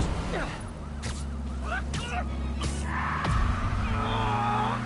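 Webs shoot out with quick whooshing thwips.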